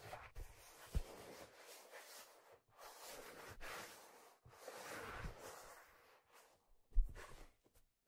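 Soft thumps sound as a leather object is handled and set down.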